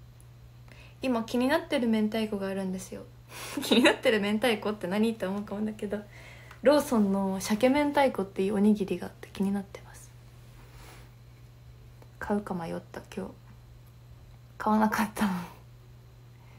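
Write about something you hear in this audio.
A young woman talks close up, in short bursts.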